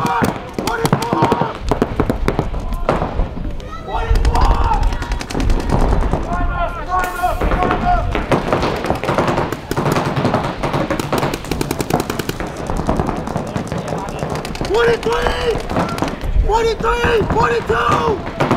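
Paintball markers fire in rapid bursts of sharp pops.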